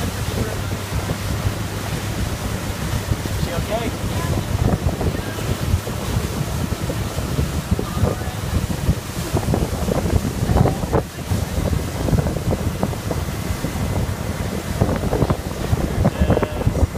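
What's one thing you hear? Water rushes and splashes behind a speeding boat.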